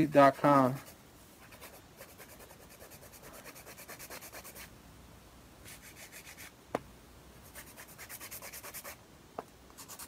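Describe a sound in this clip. A nail file rasps back and forth against a fingernail in quick strokes.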